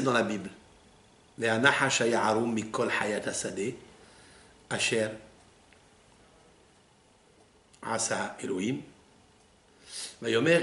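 An elderly man reads aloud slowly, with pauses, close to a microphone.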